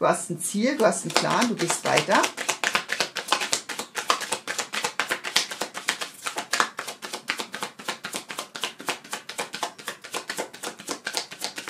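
Playing cards are shuffled quickly in the hands, flicking and pattering.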